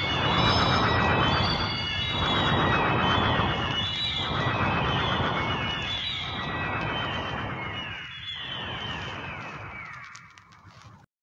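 Music plays from a spinning vinyl record, fading toward the end.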